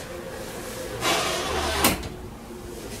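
A metal door slides and bangs shut.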